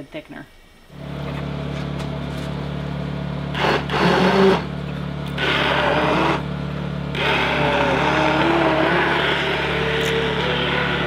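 A hand blender whirs steadily in a pot of liquid.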